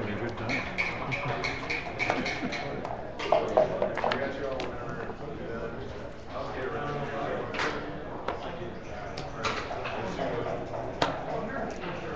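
Plastic game pieces click and slide on a wooden board.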